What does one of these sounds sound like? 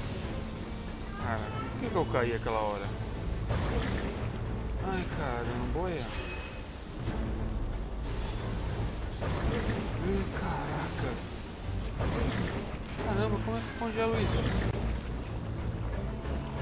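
Water pours and splashes steadily.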